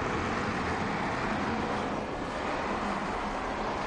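A car engine hums as the car drives past on a road.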